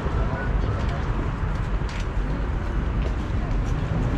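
Footsteps pass close by on pavement.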